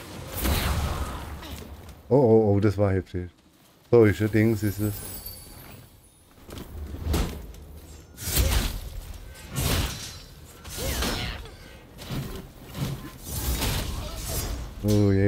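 Flames whoosh from a burning blade.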